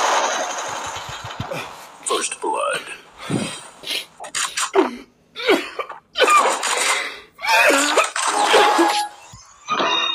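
A man exclaims loudly and with animation, close by.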